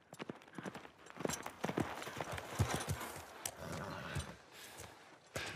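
A horse's hooves thud on the ground as it trots closer.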